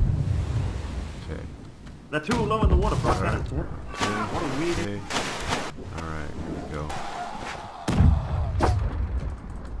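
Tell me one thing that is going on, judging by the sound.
Waves slosh and splash against a wooden ship's hull.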